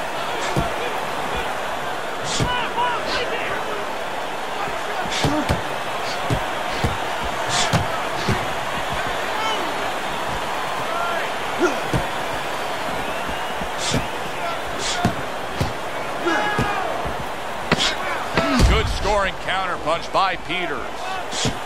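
Gloved punches land with dull thuds.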